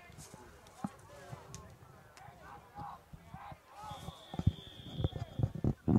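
Young men call out from the sideline, outdoors.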